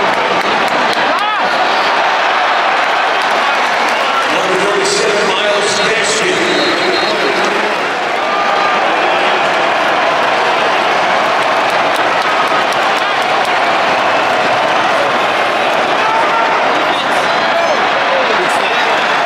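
A large stadium crowd roars and cheers loudly all around.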